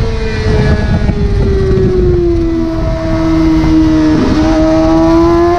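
A motorcycle engine roars at high revs, its pitch dipping and then rising again.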